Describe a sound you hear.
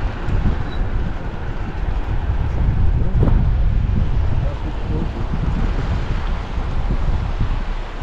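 A river rushes and burbles over rocks nearby.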